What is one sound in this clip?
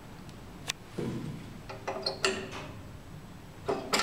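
A finger presses an elevator call button with a click.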